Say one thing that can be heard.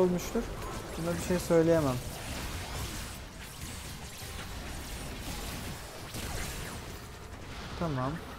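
Game spells and attacks crackle and whoosh in a fight.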